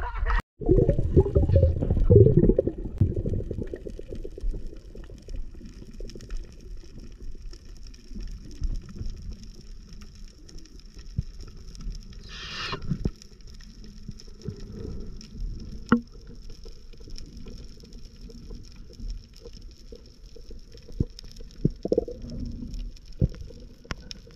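Water swirls and rumbles with a muffled, underwater sound, loudest at first.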